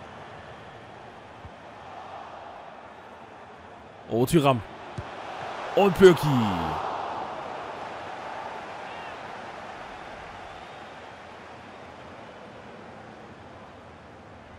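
A stadium crowd murmurs and cheers in a steady roar.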